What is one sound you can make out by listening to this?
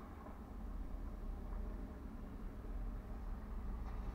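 A truck engine rumbles as the truck drives away.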